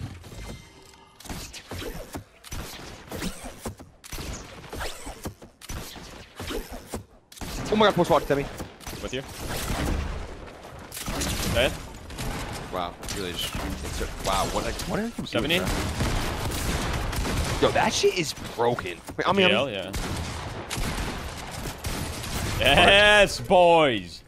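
Gunshots crack again and again in quick bursts.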